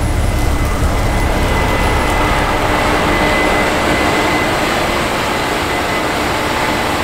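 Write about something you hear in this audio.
A combine harvester roars nearby.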